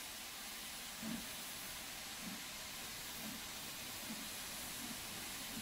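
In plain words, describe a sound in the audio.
A steam locomotive chuffs slowly as it pulls away.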